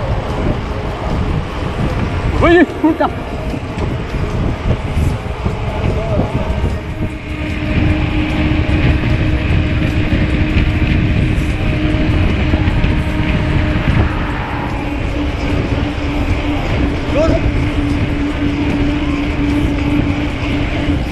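Bicycle tyres hum steadily on the road.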